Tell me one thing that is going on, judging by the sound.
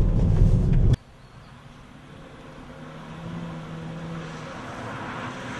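Tyres skid and crunch on gravel as a car slides through a bend outside.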